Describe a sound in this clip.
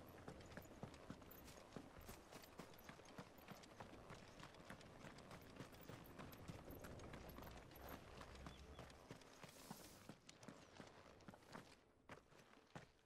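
Footsteps crunch quickly over gravel and stone.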